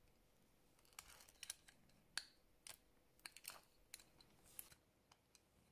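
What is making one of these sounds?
Small metal watch parts click softly as they are handled.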